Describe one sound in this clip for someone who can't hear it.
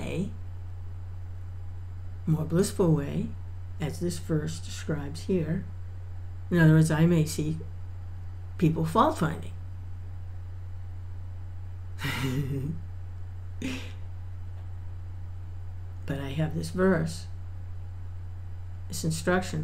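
An older woman talks calmly and close to a microphone, with pauses.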